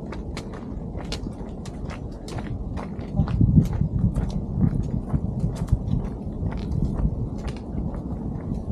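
Footsteps crunch on a dirt and stone path.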